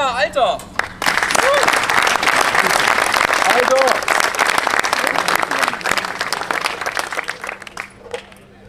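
A group of people applaud and clap outdoors.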